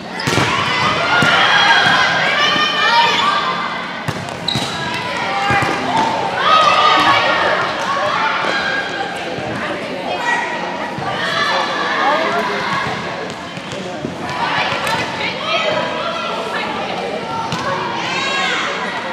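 Young girls call out to each other in a large echoing gym.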